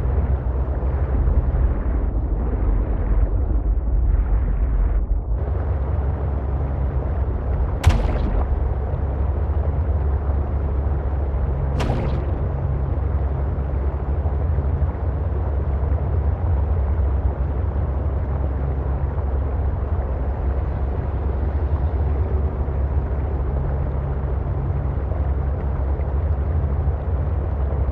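A small submarine's engine hums steadily underwater.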